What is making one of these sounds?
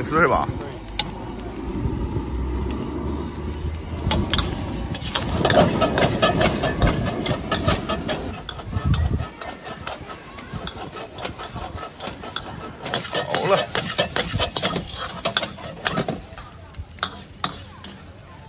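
A metal spatula scrapes and clanks against a wok.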